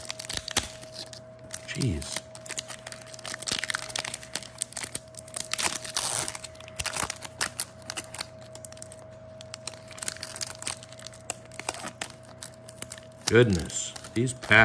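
A foil wrapper crinkles and rustles in someone's hands.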